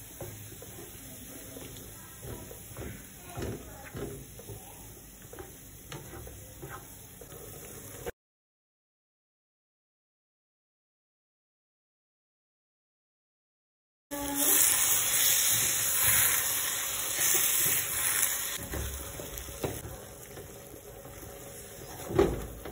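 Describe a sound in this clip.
A spatula scrapes and stirs food in a frying pan.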